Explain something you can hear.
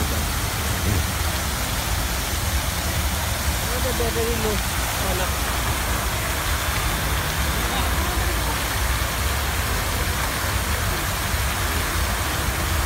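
Fountain jets of water spray and splash down into a pool.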